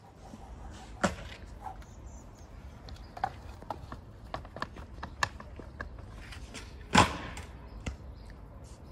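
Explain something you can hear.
A skateboard clacks sharply against the concrete.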